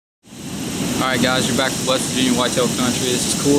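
A young man speaks calmly close to the microphone.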